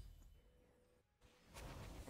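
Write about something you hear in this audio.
A blade swishes through the air.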